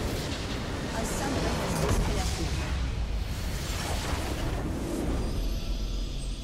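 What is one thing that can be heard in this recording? A large structure explodes with a deep, rumbling blast.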